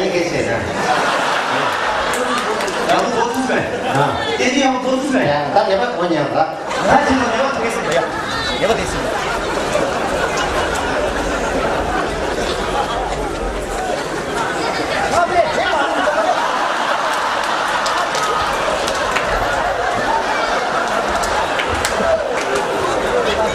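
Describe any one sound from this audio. A large crowd cheers and laughs throughout.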